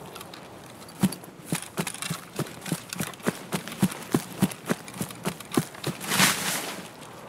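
Tall grass rustles and swishes against the legs.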